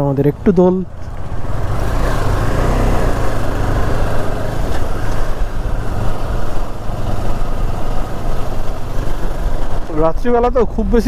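Wind rushes steadily past a moving motorcycle.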